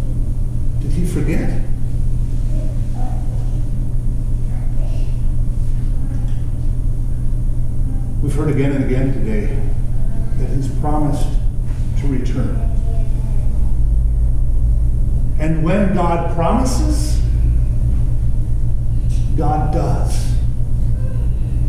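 A man speaks calmly into a microphone with long pauses.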